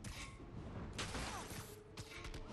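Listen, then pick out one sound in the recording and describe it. A motorbike crashes and bursts into flames.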